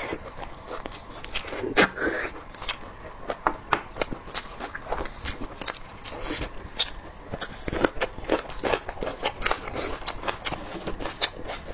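Saucy meat squelches and tears in a woman's hands close to a microphone.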